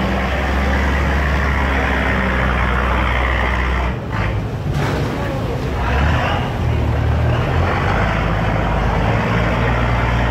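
Water churns and splashes between a hull and a concrete wall.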